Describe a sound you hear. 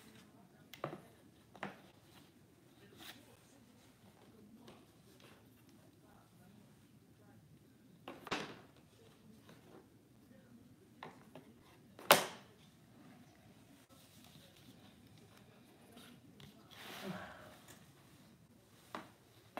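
Cardboard pieces knock and scrape as they are handled.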